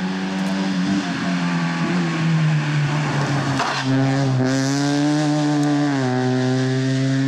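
A rally car's engine shifts gears, its pitch dropping and then climbing again.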